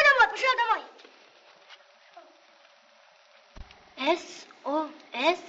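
A child speaks with animation, close by.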